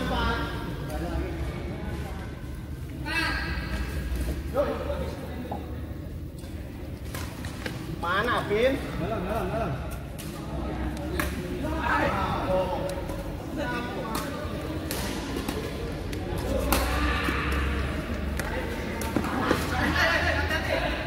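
Adult men talk with animation close by.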